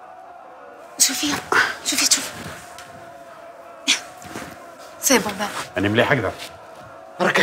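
A young woman speaks urgently close by.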